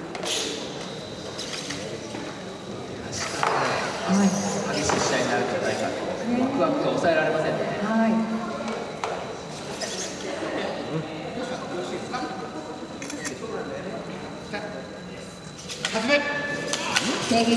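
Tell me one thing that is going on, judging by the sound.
Small robot servos whir as robots walk and fight.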